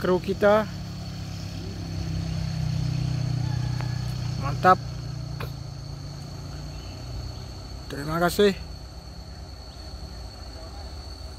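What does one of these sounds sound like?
A truck engine rumbles nearby.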